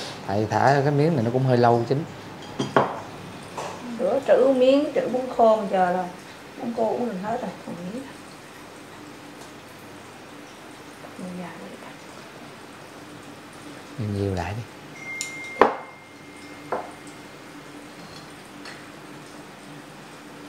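Broth simmers softly in a pot.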